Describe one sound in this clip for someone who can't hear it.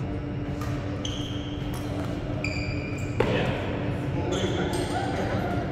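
Shoes squeak on a court floor.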